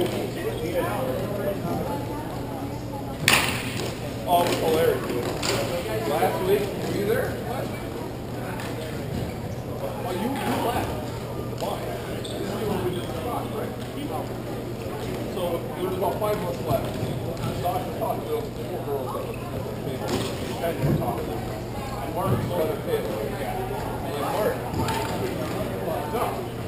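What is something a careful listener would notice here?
Skate wheels roll and scrape on the floor.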